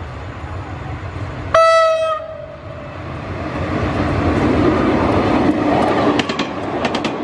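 A diesel locomotive approaches with a rumbling engine.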